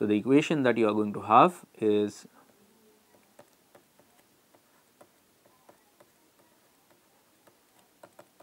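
A pen scratches softly on a writing pad.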